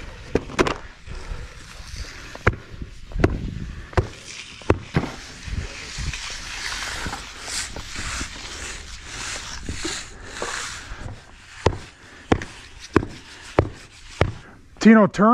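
A hand tamper thumps repeatedly on rubber mats.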